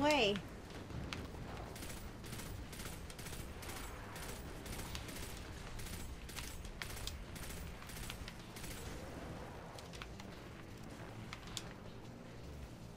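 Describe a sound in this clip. Rapid gunfire cracks in quick bursts.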